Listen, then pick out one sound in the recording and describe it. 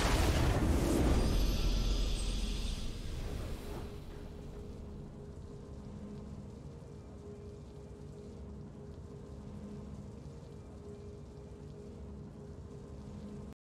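A short game victory tune plays and fades.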